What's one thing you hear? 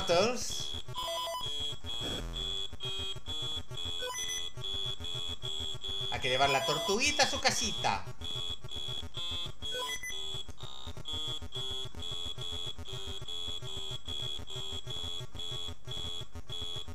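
Electronic game beeps and bloops repeat in a fast, steady rhythm.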